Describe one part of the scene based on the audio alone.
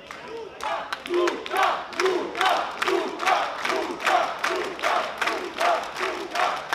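A crowd chants together in a steady rhythm.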